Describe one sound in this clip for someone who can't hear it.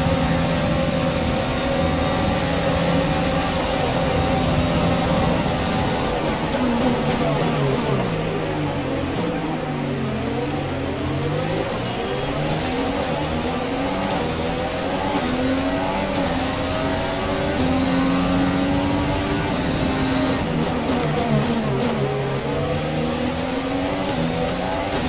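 A racing car engine screams at high revs and drops in pitch as it brakes and shifts gears.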